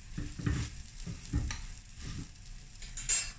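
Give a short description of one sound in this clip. A metal spatula scrapes against a hot pan.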